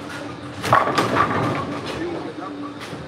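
Bowling pins crash and clatter in a large echoing hall.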